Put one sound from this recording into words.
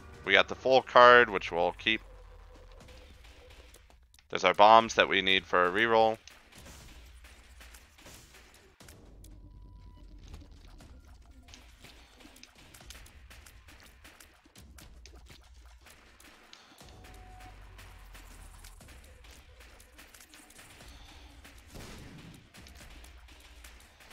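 Quick soft pops of a video game's shots sound over and over.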